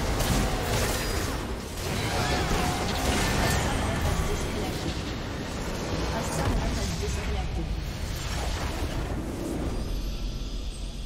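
Game spell effects crash and whoosh in a chaotic battle.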